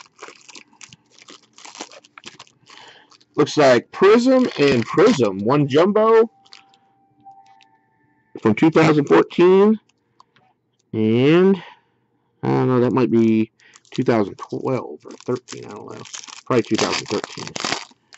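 A foil wrapper crinkles and rustles close by.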